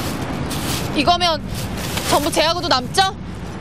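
A young woman speaks nearby with feeling.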